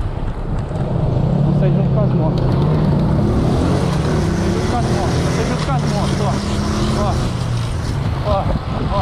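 A motorcycle engine rumbles and revs close by.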